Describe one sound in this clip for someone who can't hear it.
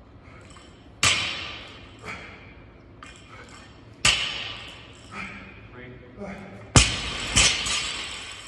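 A barbell with rubber plates drops and thuds loudly on the floor.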